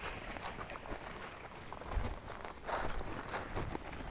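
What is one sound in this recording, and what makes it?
Paws crunch over dry grass.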